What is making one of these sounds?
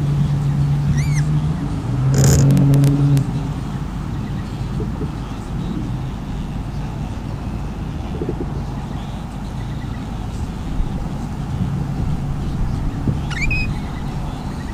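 A bird gives short high chirps nearby.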